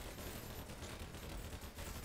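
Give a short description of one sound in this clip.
Gunfire rattles in a game.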